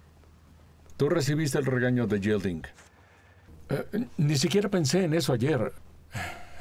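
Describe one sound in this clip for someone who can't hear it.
A man speaks cheerfully close by.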